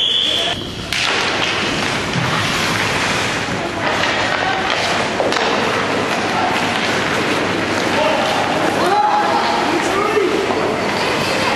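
Ice skates scrape and hiss across the ice.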